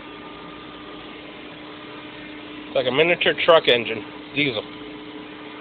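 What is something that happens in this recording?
A generator engine runs with a steady low hum.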